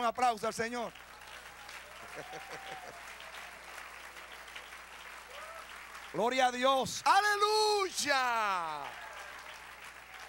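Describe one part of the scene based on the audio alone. A crowd claps along steadily.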